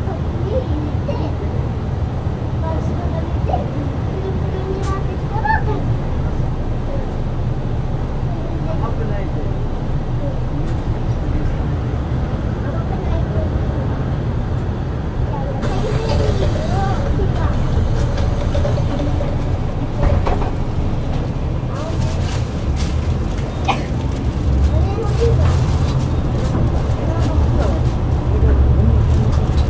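A bus engine rumbles low and steady, then revs as the bus pulls away.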